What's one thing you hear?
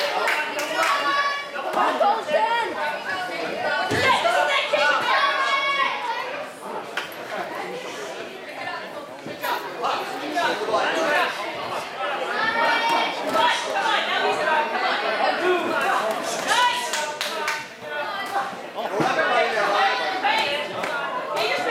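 Boxing gloves thud against a boxer's body and headgear.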